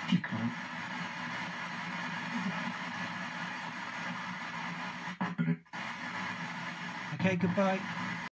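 Radio static hisses steadily from a small speaker.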